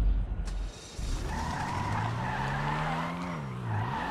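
A car engine revs up and roars as the car pulls away.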